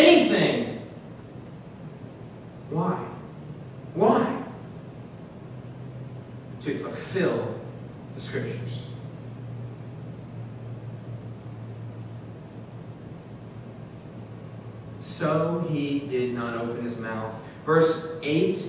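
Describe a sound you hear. A young man speaks slowly and deliberately through a microphone, with long pauses.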